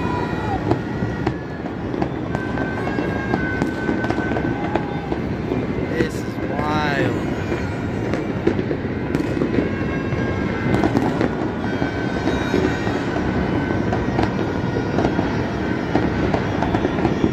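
A dense roar of distant explosions fills the air outdoors.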